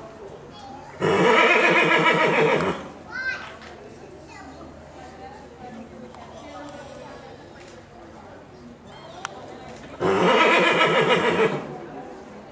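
A foal neighs loudly nearby.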